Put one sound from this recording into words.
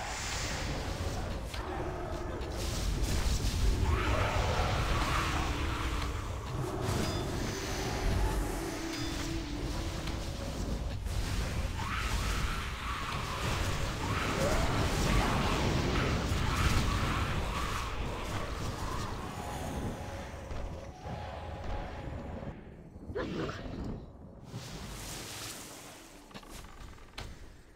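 Magic spells crackle and boom in a busy fight.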